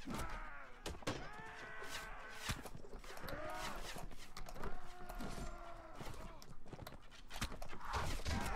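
A horse's hooves pound on grass.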